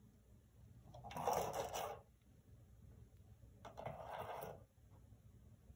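A plastic treat ball rattles and rolls on a hard floor as a cat paws it.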